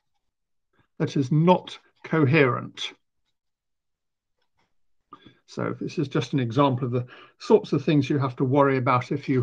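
A man lectures calmly through a microphone over an online call.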